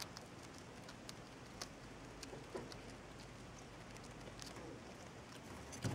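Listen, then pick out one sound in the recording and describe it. A small rodent nibbles and gnaws at a treat.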